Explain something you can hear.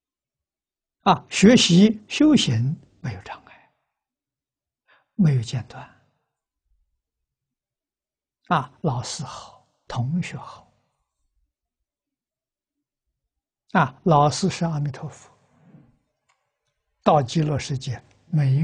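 An elderly man speaks calmly in short phrases with pauses, close to a clip-on microphone.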